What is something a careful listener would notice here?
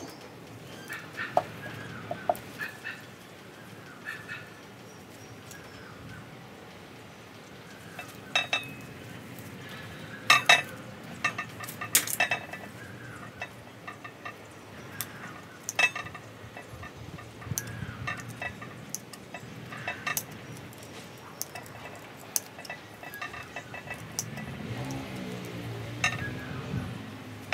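Gloved hands rustle leaves and branches.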